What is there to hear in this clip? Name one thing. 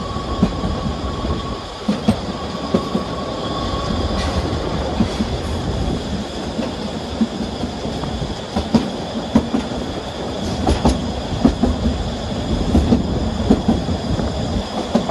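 Train wheels click and knock over rail joints.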